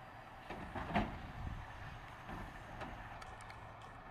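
A garbage truck's mechanical arm lifts a bin with a whirring hum.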